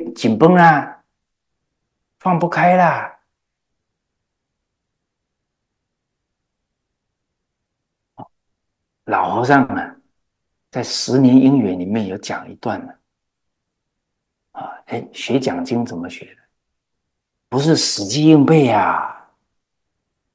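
A middle-aged man speaks with animation into a close microphone, pausing between phrases.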